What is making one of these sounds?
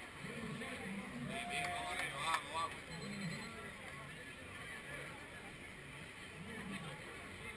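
A crowd of people chatter and call out outdoors.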